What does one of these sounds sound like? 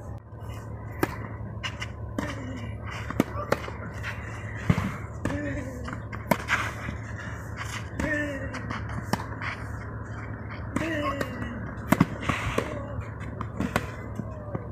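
A tennis ball is hit with sharp pops of a racket.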